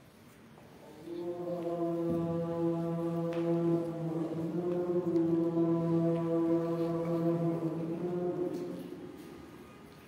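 A young man chants a long drawn-out call through a microphone.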